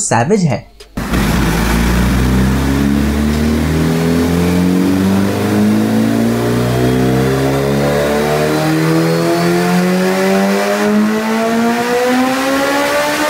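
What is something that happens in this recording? A motorcycle engine roars and climbs steadily higher in revs.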